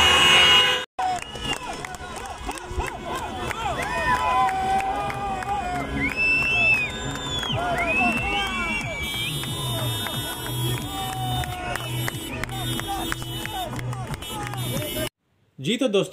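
A crowd of young men cheers and chants loudly.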